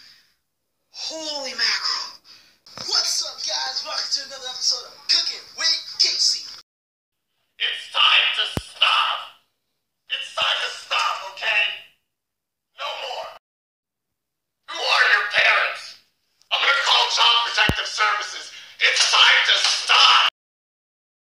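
A man talks loudly and with animation close by.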